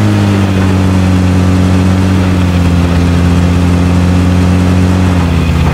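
A car engine drones steadily as the vehicle drives over rough ground.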